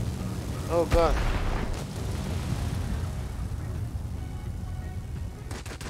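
Bombs explode with deep booms.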